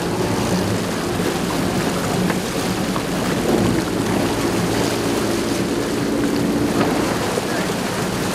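Water splashes against a boat hull.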